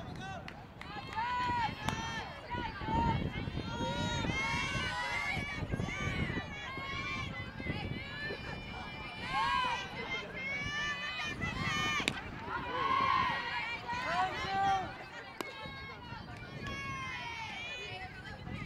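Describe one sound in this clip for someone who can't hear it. Young women on a team chant and cheer loudly outdoors.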